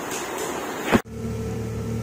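A hose sprays a strong jet of water.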